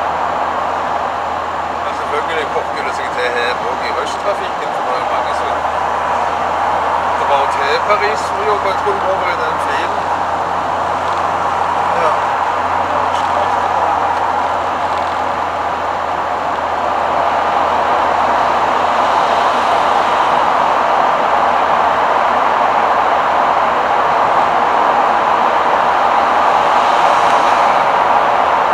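Tyres roar on asphalt, heard from inside a camper van's cab.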